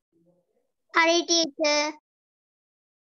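A boy speaks up briefly and loudly over an online call.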